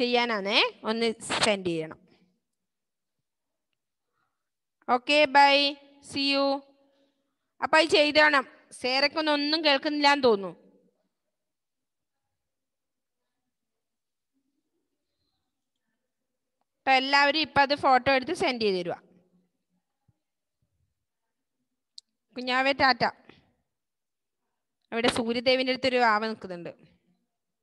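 A woman speaks over an online call, in bursts with pauses.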